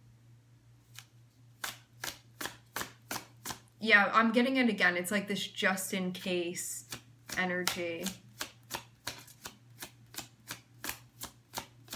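Playing cards flick and snap as they are dealt.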